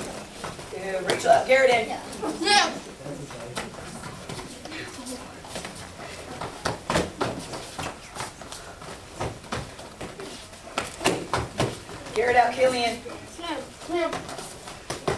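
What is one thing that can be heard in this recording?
Young fighters shout loudly as they strike.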